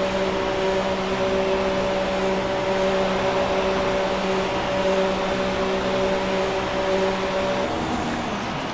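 A racing car engine hums steadily at low speed.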